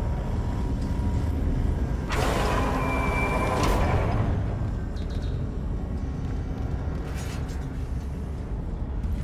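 Heavy armored footsteps clank on a metal floor.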